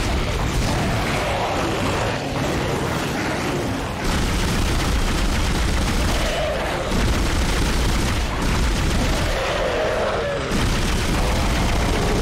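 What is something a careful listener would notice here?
A man speaks close to a microphone.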